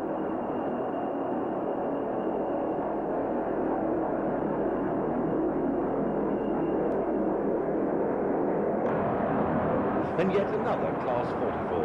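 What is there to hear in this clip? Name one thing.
A diesel locomotive rumbles past, hauling a freight train.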